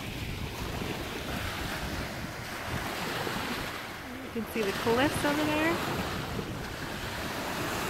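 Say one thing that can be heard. Small waves lap at the shore.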